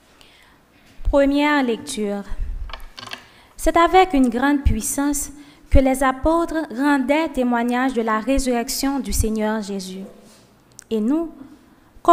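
A young woman reads out calmly into a microphone.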